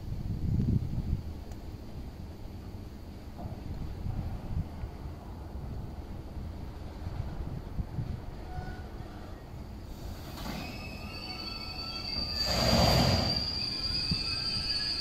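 A freight train rumbles past at a steady pace.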